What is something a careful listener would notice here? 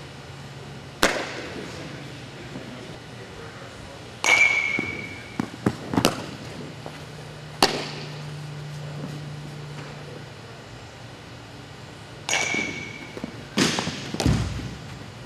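A softball smacks into a leather glove, echoing in a large indoor hall.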